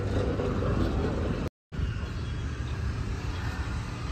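Traffic rumbles past on a road.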